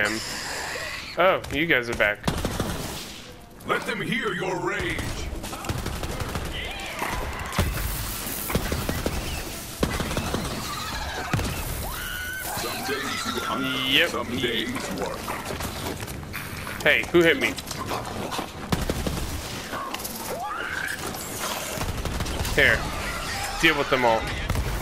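Gunfire crackles in rapid bursts.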